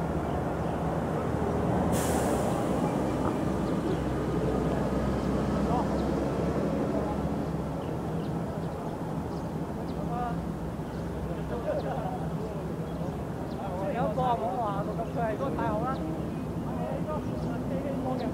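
Wind blows steadily and rumbles against the microphone outdoors.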